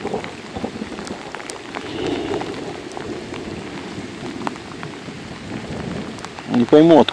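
Rain patters steadily on water outdoors.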